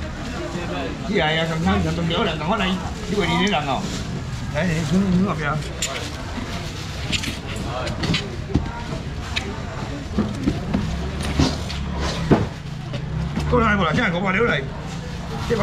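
A man talks with animation nearby.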